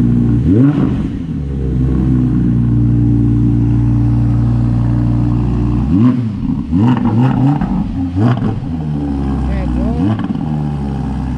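A sports car engine revs up several times.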